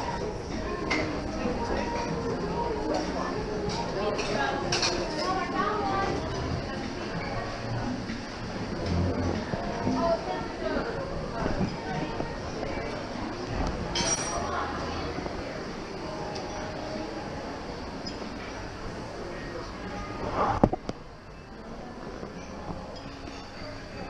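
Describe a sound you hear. A crowd of people chatter quietly in a large room.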